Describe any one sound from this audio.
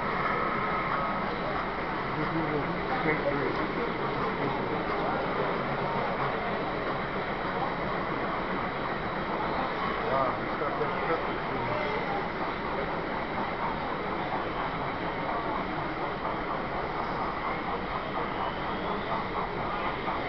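Several people chatter in a busy echoing room.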